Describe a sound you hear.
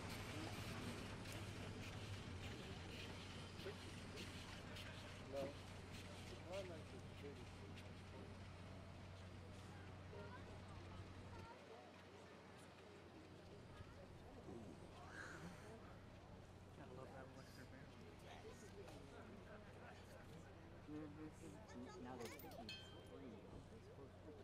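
A steam locomotive chugs heavily as it pulls away.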